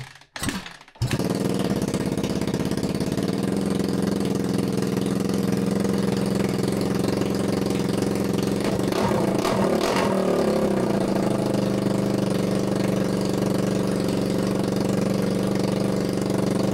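A dirt bike engine fires up and idles loudly and steadily.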